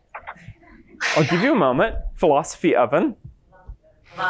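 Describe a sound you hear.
A man speaks with animation to an audience in a large room.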